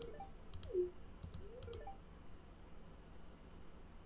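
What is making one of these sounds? A short game blip sounds as a dialogue box opens.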